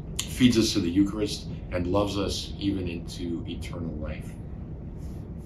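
A middle-aged man speaks calmly and warmly, close to a microphone.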